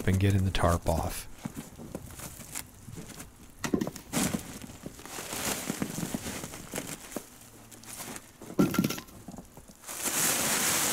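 A shovel scrapes and chops into packed snow.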